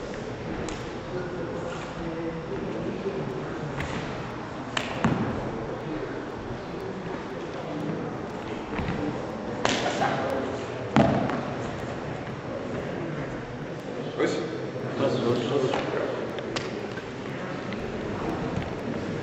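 A man speaks calmly to a group in a large echoing hall.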